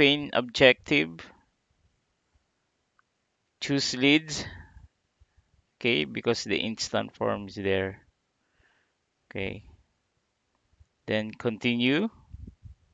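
A man speaks calmly into a microphone, close by, in short phrases with pauses.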